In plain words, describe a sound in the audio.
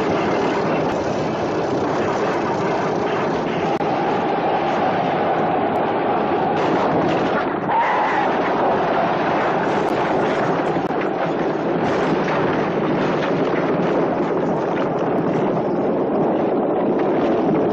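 Chariot wheels rumble and clatter over the ground.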